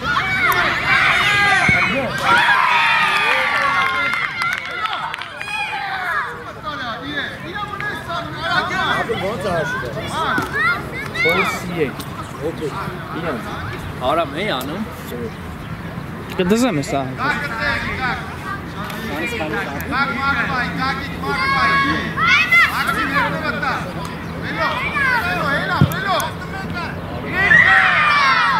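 A crowd of spectators cheers loudly.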